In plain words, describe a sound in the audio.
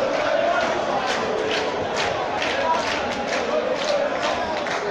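Many spectators clap in quick bursts.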